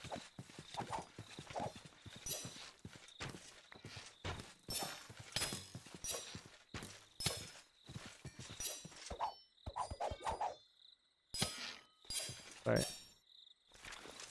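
Magic spells zap and burst in quick bursts.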